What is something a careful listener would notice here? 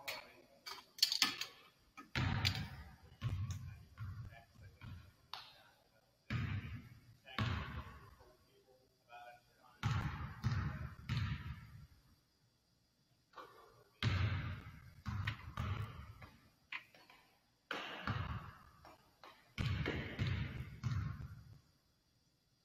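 A basketball strikes the rim and backboard.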